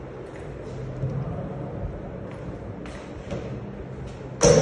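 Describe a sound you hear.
A door latch clicks as a door is pushed open.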